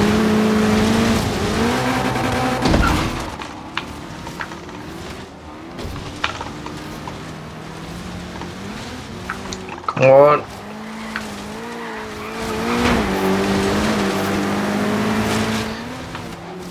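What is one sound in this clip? A car engine roars and revs up and down as the car races.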